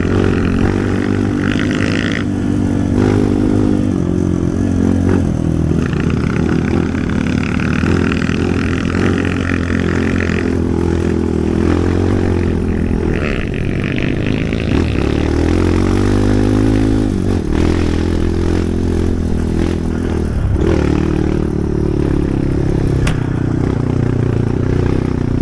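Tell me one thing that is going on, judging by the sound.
Tyres rumble over a bumpy dirt track.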